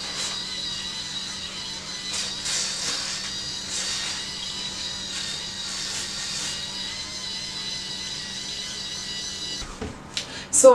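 An electric facial brush hums steadily.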